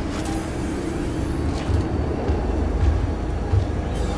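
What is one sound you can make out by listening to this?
A motion tracker beeps in short electronic pulses.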